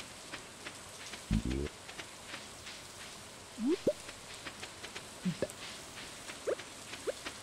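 Light rain patters steadily.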